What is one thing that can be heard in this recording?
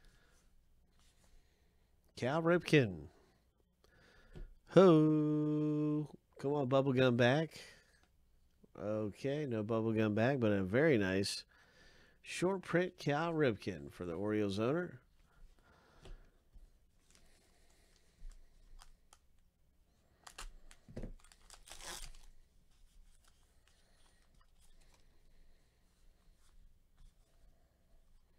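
Trading cards slide softly against each other.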